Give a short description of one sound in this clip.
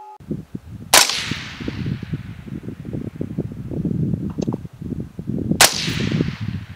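A .223 bolt-action rifle fires a sharp, echoing shot.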